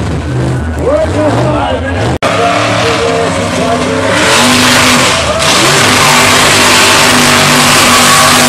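A truck engine roars and revs loudly.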